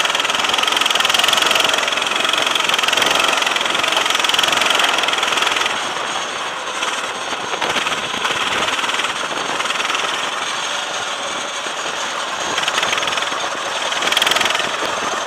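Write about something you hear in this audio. A kart engine buzzes loudly close by, rising and falling in pitch as it speeds up and slows.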